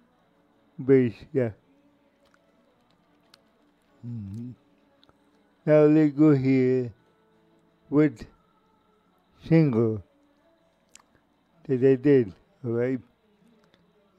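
An elderly man speaks calmly and closely into a microphone, in short phrases with pauses.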